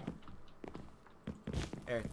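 A fire crackles softly.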